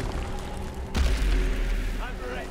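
A magical blast bursts with a heavy boom.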